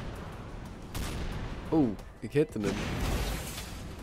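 A rocket launcher fires with a whoosh.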